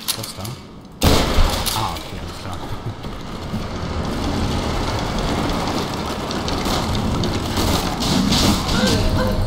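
Wooden planks crash and splinter as they fall apart.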